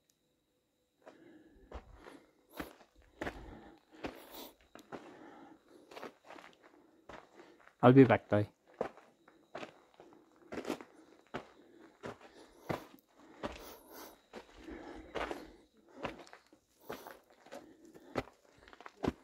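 Footsteps crunch on loose dirt and gravel.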